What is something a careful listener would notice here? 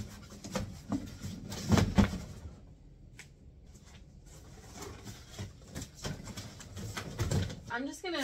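Cardboard boxes scrape and thump.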